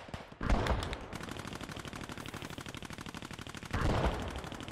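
Rapid footsteps run over dirt.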